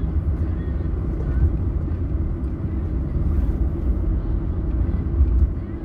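A car engine rumbles low and steady while driving.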